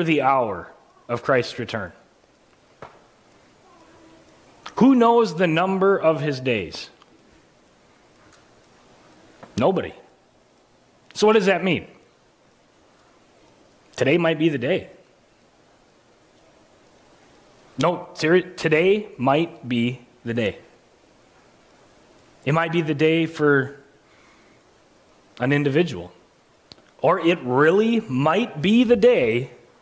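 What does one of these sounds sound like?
A man speaks with animation through a microphone, in phrases with pauses, in a room with a slight echo.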